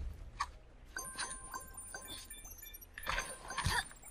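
Bright chiming game sounds ring out as coins are collected.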